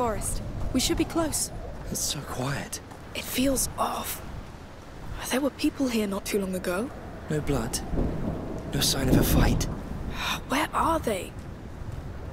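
A young woman speaks quietly and urgently.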